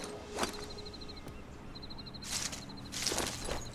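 Leaves rustle as someone pushes through dense bushes.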